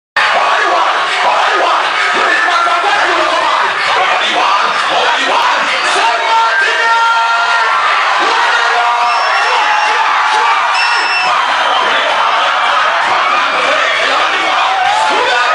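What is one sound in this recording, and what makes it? A crowd cheers and shouts loudly in a noisy, echoing hall.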